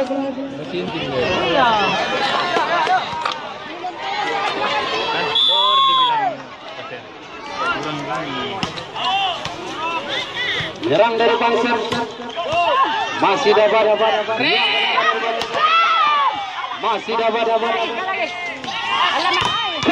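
A large outdoor crowd cheers and shouts excitedly.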